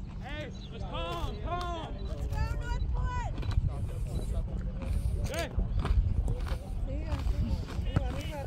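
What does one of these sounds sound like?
Young girls shout and call out across an open field.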